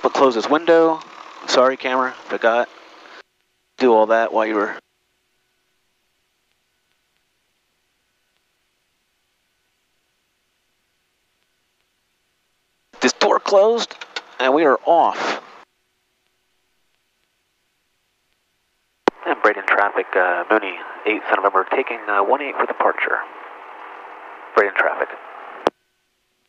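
A man speaks calmly through a headset microphone in short bursts.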